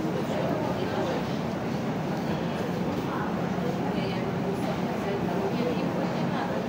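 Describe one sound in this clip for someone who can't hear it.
Shoppers' voices murmur and chatter indoors.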